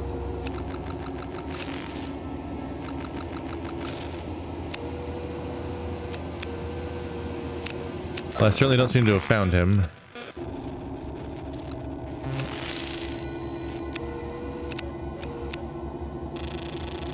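Machinery hums steadily.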